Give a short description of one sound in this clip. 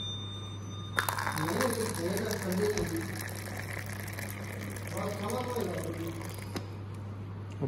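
Hot liquid pours from a dispenser spout into a paper cup.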